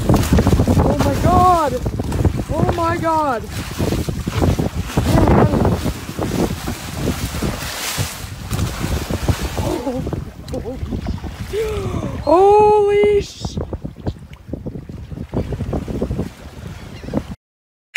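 Water splashes and churns loudly as a large fish thrashes beside a boat.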